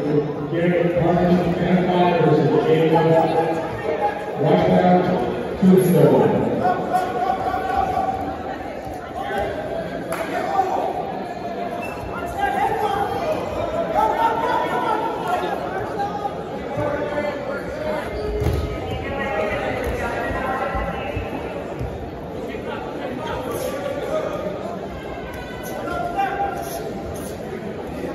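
A crowd of spectators shouts and cheers loudly in an echoing gym.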